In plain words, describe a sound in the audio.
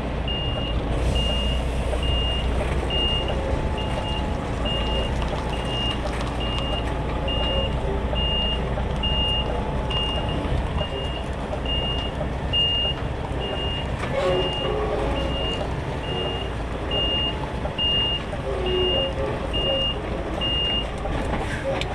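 A truck's reversing alarm beeps at a steady pace.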